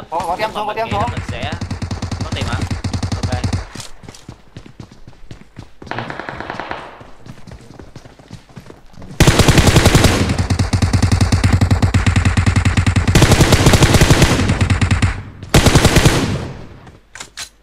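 Rapid gunfire bursts loudly from a video game.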